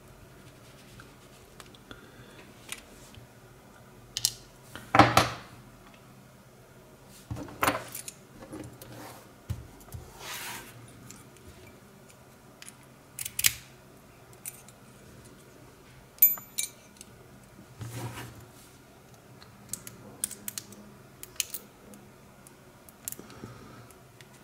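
Small metal lock parts click and tap.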